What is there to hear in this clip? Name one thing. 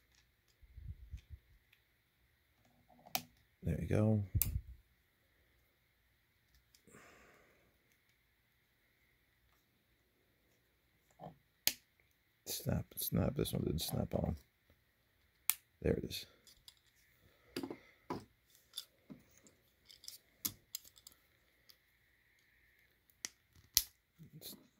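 Small plastic parts click and tap as hands snap a toy trailer together.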